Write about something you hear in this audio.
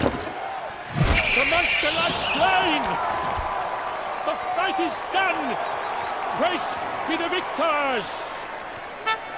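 A man announces loudly, calling out with a raised voice.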